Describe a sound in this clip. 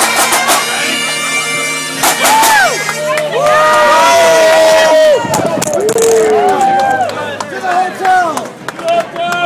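A crowd of men and women talks and shouts loudly nearby outdoors.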